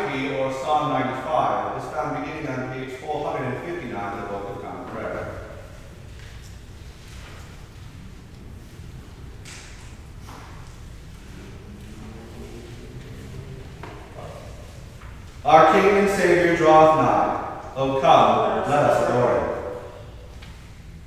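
A man speaks calmly and reads out in a large echoing hall.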